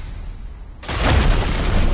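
A heavy blow lands with an explosive crash.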